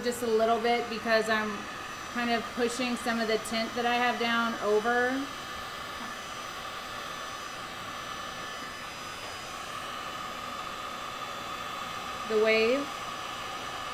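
A woman talks casually, close to the microphone.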